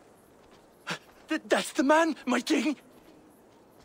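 A young man pleads with alarm.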